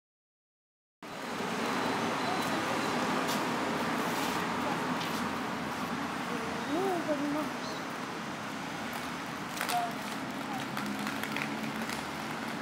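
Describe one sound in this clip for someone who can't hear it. Roller skates roll along pavement outdoors.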